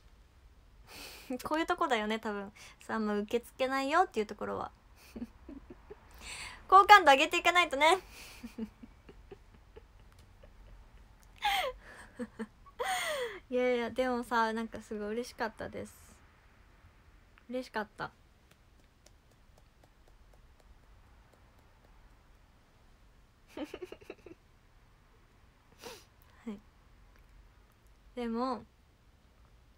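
A young woman talks animatedly and close by, in bursts with pauses.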